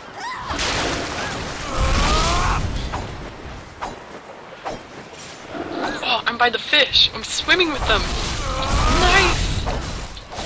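Weapons swish and clang in a fast fight.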